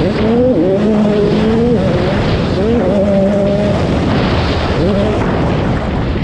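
A dirt bike engine revs loudly up and down close by.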